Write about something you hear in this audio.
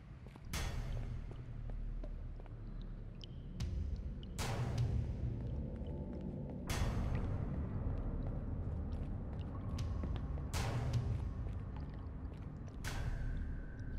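Slow footsteps thud on a hard floor, echoing in a large empty space.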